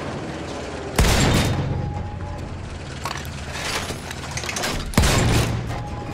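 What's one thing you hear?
A heavy rifle fires loud shots that echo outdoors.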